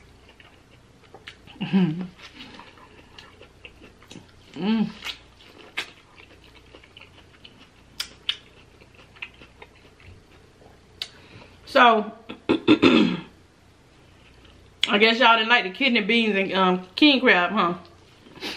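A woman bites into crunchy food close to a microphone.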